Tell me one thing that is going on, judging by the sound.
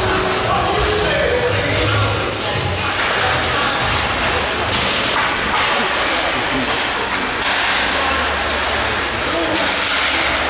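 A crowd murmurs in a large echoing rink.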